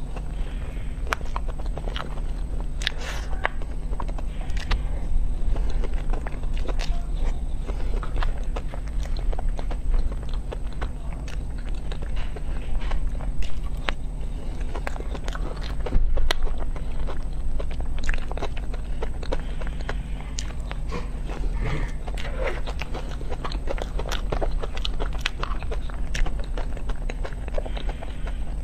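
A young woman chews and smacks her lips close up.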